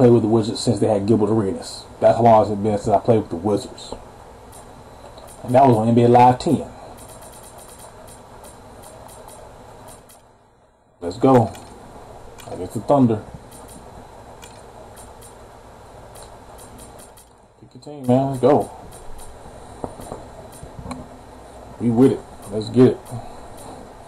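A man talks casually into a nearby microphone, in short bursts.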